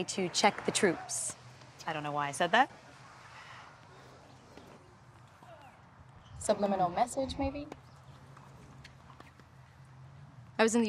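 A young woman speaks cheerfully, close by.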